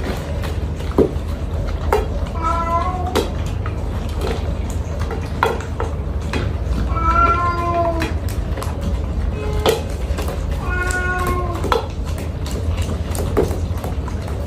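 Metal bowls clink and knock on a tabletop.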